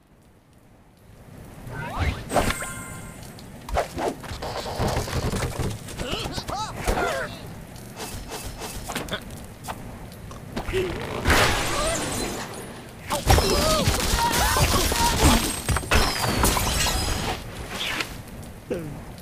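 A cheerful game tune plays.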